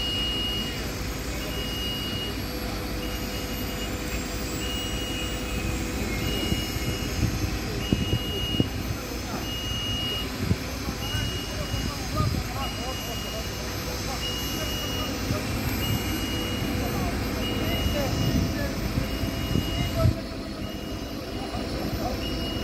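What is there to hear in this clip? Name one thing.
A crane's engine hums steadily outdoors.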